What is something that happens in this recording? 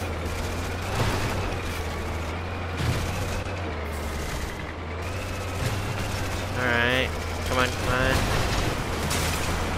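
Wooden crates smash with sharp cracks.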